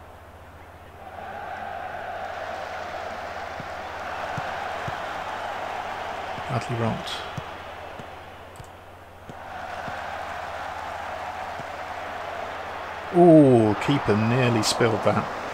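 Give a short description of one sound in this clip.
A stadium crowd roars and cheers, swelling and falling.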